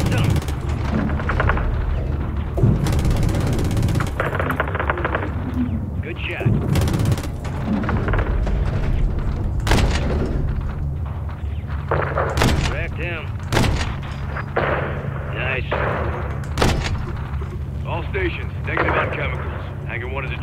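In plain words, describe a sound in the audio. Heavy explosions boom one after another, some close and some farther off.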